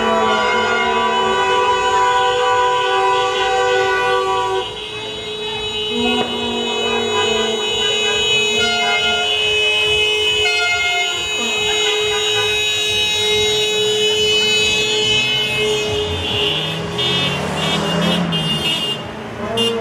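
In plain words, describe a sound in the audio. A crowd of young men and women cheers and shouts outdoors.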